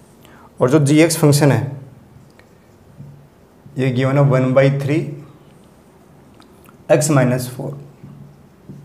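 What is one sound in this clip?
A man speaks calmly in short phrases, close by.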